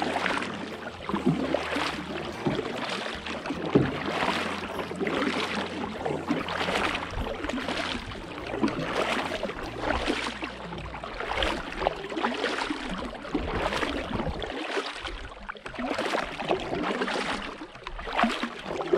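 A paddle splashes and dips into calm water in a steady rhythm.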